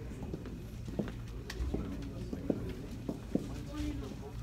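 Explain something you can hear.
High heels click on a wooden stage floor.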